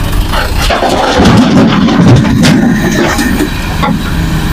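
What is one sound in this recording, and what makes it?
Soil pours from an excavator bucket into a steel truck bed.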